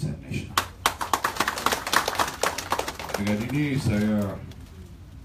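A crowd applauds loudly in a large room.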